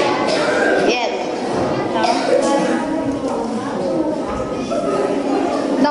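A boy speaks into a microphone over loudspeakers in an echoing hall.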